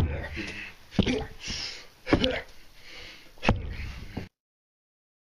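Hands and knees thump softly on a carpeted floor.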